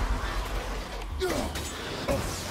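An axe swings through the air with a whoosh.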